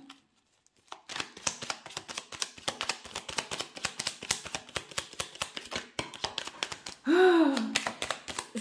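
Playing cards are shuffled with quick, rapid flicks.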